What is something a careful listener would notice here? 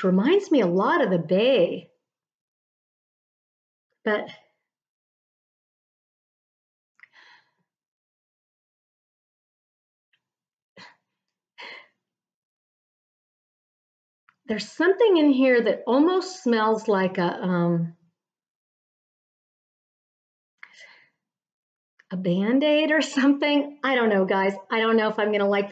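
A middle-aged woman talks with animation close to a microphone, pausing now and then.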